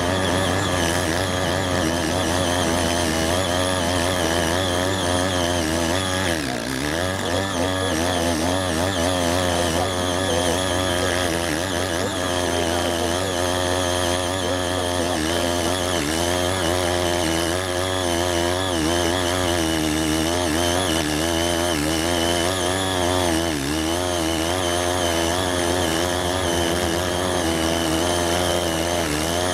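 A small petrol engine drones steadily, its pitch wavering under load.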